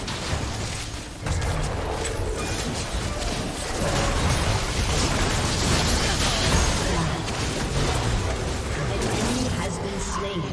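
Game spell effects whoosh and crackle in a battle.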